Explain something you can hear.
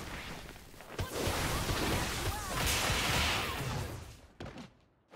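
A loud electric energy blast crackles and roars.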